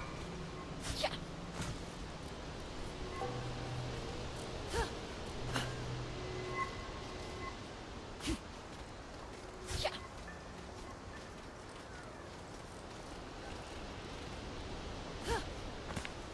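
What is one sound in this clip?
A climber's hands thud and scrape against rock ledges.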